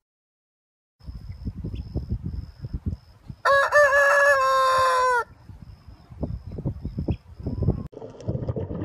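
Hens cluck and peck on grass.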